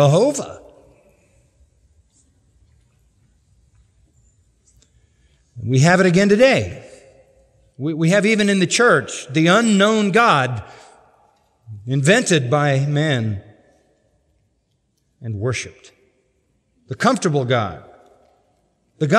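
An older man preaches forcefully through a microphone in a large room, with long pauses between phrases.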